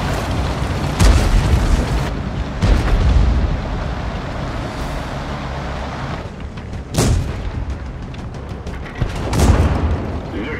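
Tank cannons fire with loud booms.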